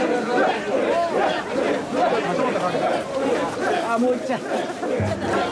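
A large crowd of men chants and shouts loudly outdoors.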